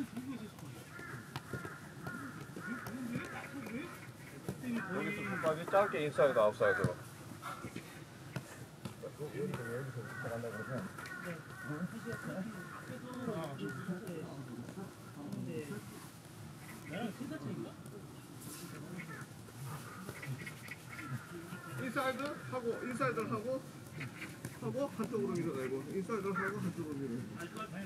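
Young men talk and call out outdoors, nearby.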